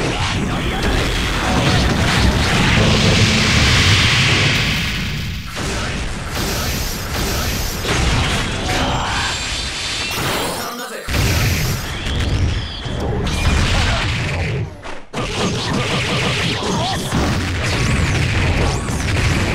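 Rapid punches and kicks land with loud smacking hits.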